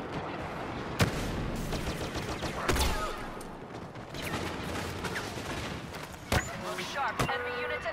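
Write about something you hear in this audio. Laser blasters fire in sharp bursts.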